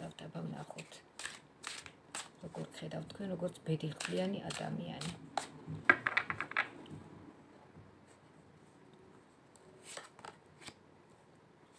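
Playing cards are shuffled with a quick riffling flutter.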